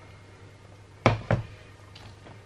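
A metal pot knocks down onto a hard table.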